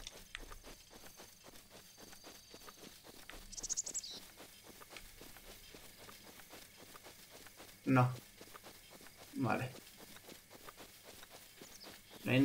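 Quick footsteps run through grass.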